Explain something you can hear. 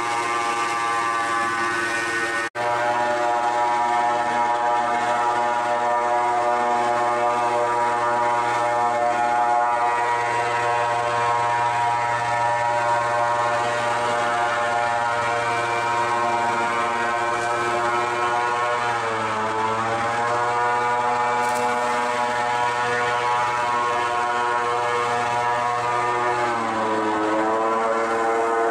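An airboat engine roars steadily, its pitch dropping now and then.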